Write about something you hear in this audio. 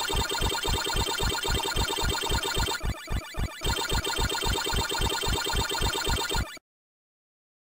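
A video game character chomps in a quick, steady electronic rhythm.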